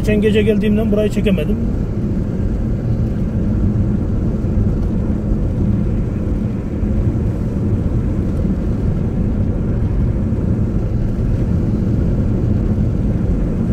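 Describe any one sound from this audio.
Tyres roll steadily on the road.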